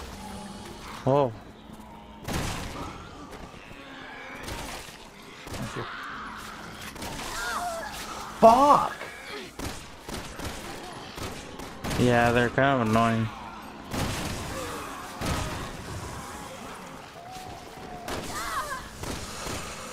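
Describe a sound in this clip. Creatures groan and moan loudly.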